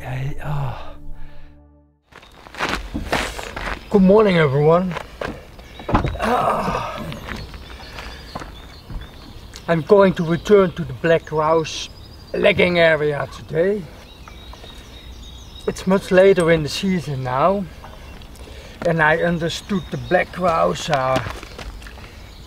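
A man talks calmly, close up.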